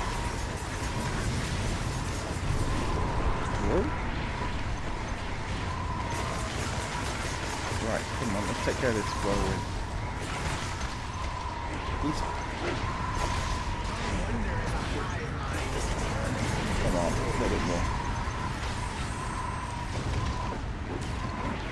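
Magic blasts and weapons clash in a fast fight.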